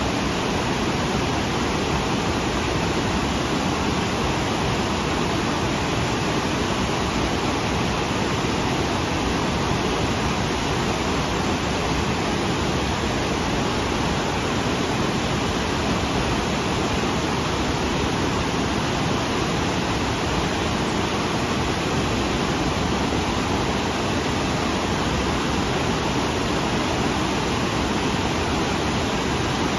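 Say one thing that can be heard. A waterfall roars and rushes steadily over rocks close by.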